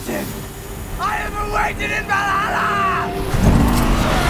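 A young man shouts wildly and close.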